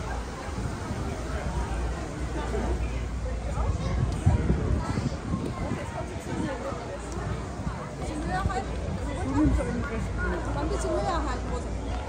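A crowd of women and men chatter outdoors as they walk.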